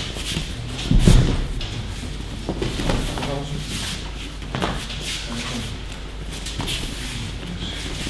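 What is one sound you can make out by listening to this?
Bare feet shuffle and slide on a mat.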